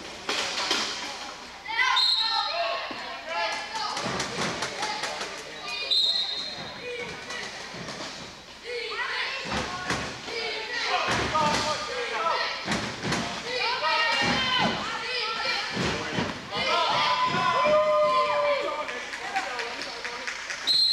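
Men and women shout and cheer in a large echoing hall.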